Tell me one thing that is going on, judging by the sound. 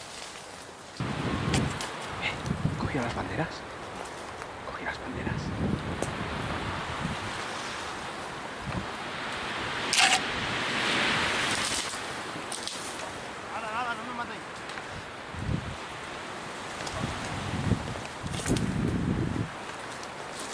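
Footsteps crunch through dry brush outdoors.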